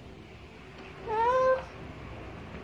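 A toddler squeals briefly, close by.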